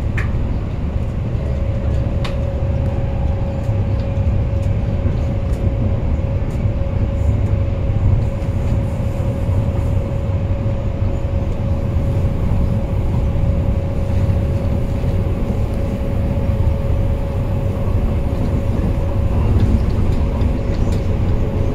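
A train rumbles steadily along the tracks with a low, constant drone.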